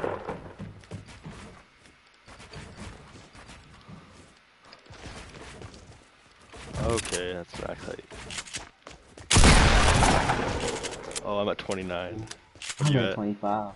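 Wooden building pieces snap into place with quick knocks.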